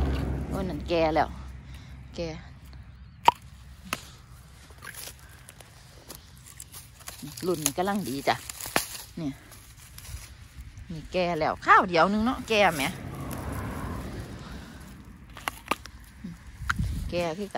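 A hand brushes and rustles dry plant stems.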